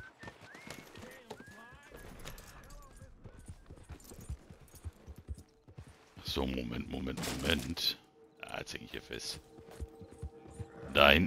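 A horse's hooves thud on soft ground.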